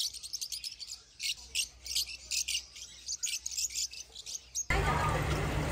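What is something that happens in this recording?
Lovebirds chirp and squeak in rapid, shrill bursts.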